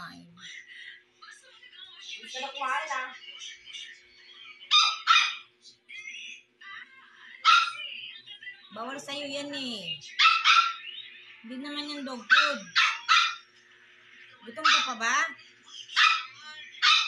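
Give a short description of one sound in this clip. A puppy whimpers and yelps in high squeaks.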